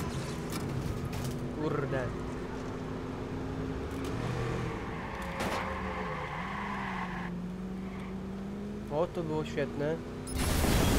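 A car engine hums steadily as the vehicle drives.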